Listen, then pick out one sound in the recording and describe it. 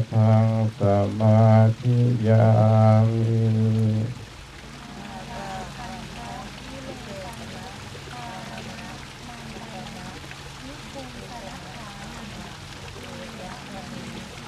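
A group of men chant together in low, steady voices, loud at first and then softer.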